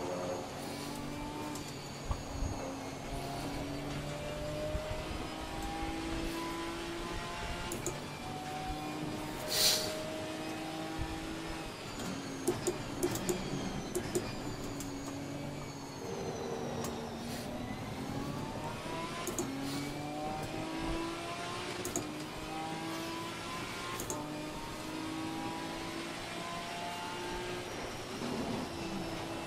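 Rain spray hisses against the car.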